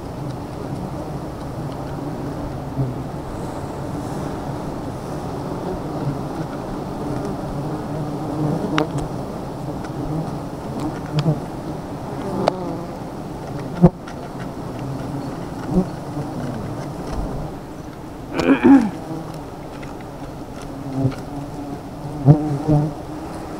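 A swarm of bees hums and buzzes steadily nearby.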